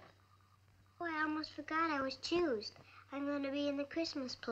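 A young girl talks in a high, lilting voice.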